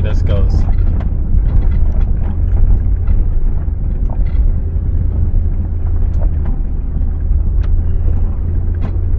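Tyres crunch and bump over a rough dirt track.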